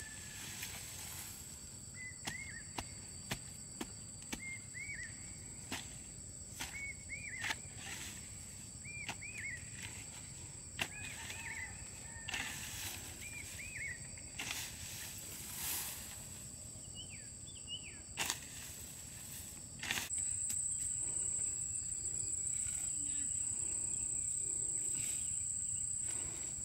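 A hoe chops into soil and grass with sharp, repeated thuds.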